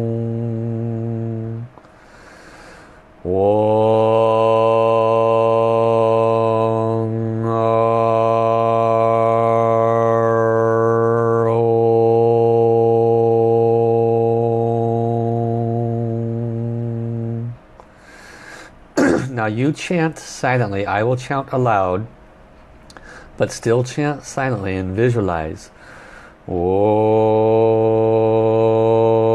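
A man chants long, steady, deep tones close to a microphone.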